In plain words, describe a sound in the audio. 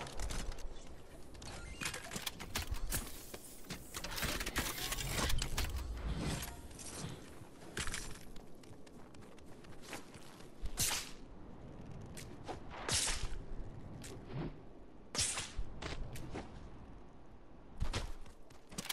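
Game sound effects whoosh and burst in quick succession.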